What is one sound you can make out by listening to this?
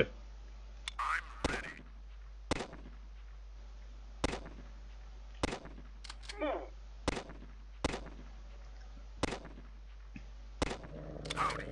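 Gunshots crack one at a time.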